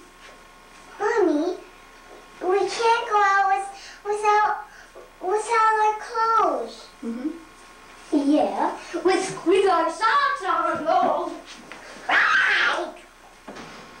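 A young child talks and sings in a high voice close by.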